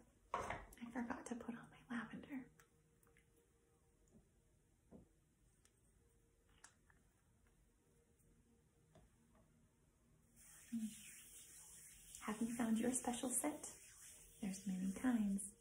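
A woman speaks calmly and softly close by.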